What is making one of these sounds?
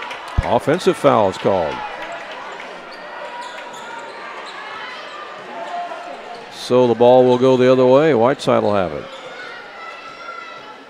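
A crowd murmurs steadily in a large echoing gym.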